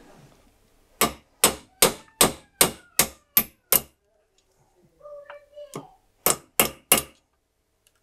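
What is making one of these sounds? A hammer taps sharply on metal in quick repeated blows.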